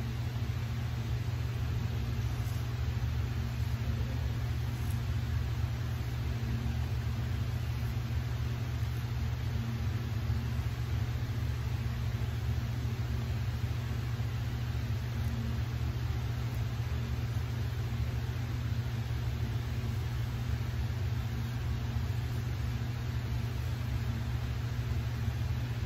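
A razor scrapes softly across stubble.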